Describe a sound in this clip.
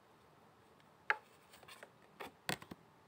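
A card tin clicks as it is handled.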